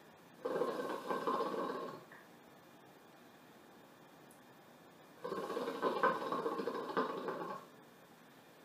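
Water bubbles and gurgles loudly in a hookah in short bursts.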